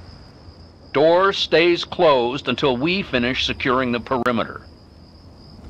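A man speaks curtly through an intercom speaker.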